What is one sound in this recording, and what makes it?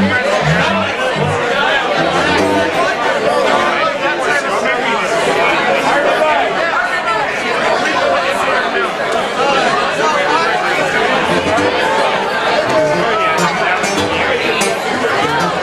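Several acoustic guitars strum a lively tune.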